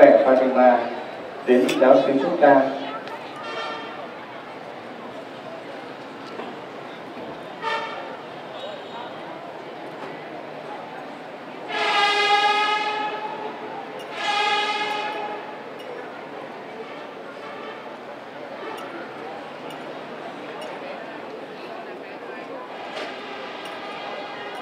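A censer's metal chains clink as it swings.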